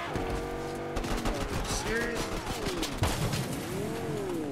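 A car scrapes and knocks against a wall.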